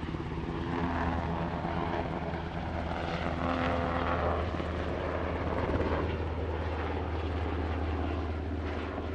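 A Black Hawk helicopter hovers with a slung load, its rotor thumping and turbines whining.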